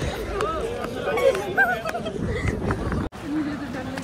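A crowd of young people chatters while walking.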